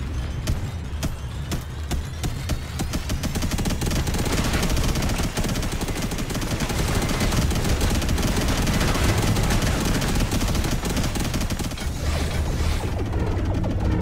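Rapid electronic gunfire crackles.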